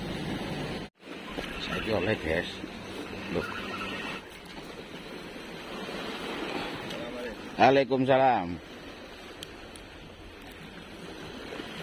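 Sea waves wash gently against a rocky shore.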